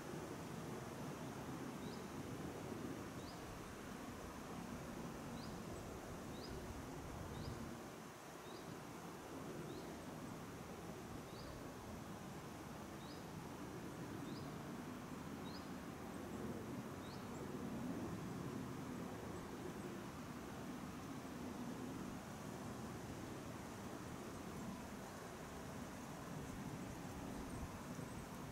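Wind blows steadily outdoors and rustles through the trees.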